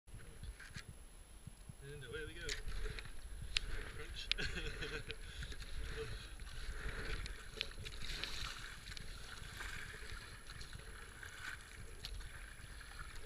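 A paddle splashes and dips into water in a steady rhythm.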